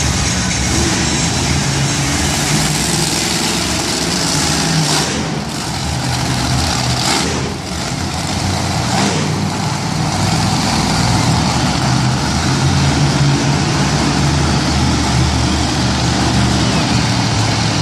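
Monster truck engines roar loudly in a large echoing arena.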